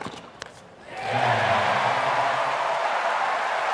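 A large crowd cheers and applauds loudly.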